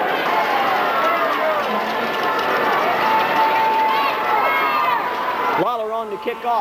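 A large crowd cheers and whistles loudly in an open stadium.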